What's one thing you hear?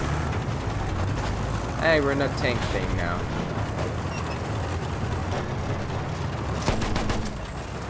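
A heavy engine rumbles steadily throughout.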